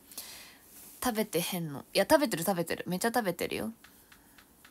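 A young woman speaks close to a microphone in a quick, lively way.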